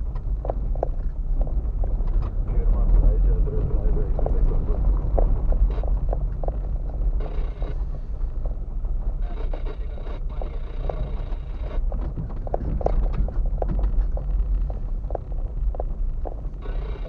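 A car engine hums low and steady while driving slowly.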